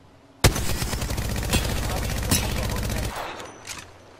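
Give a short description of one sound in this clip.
A rifle fires in a rapid, loud burst.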